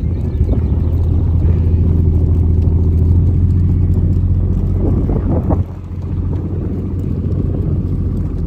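Sheep hooves patter on a dirt track.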